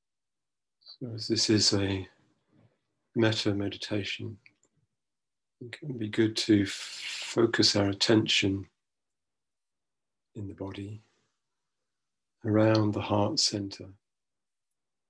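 A middle-aged man speaks slowly and calmly in short phrases, heard through an online call.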